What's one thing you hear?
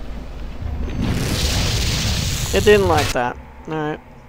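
A magical blast roars and crackles loudly.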